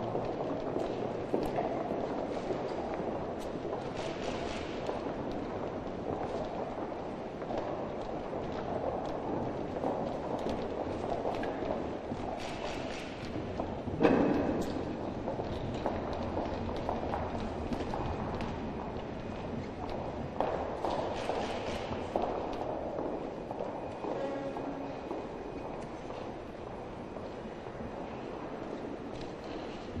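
Footsteps click on a hard floor in a large echoing hall.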